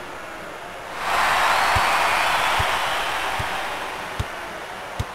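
A large crowd cheers loudly, then slowly quiets down.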